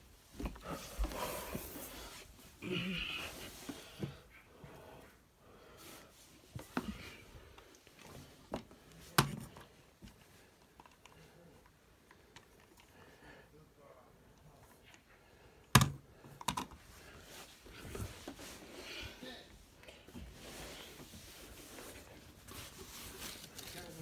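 Plush toys and cloth rustle as they are handled.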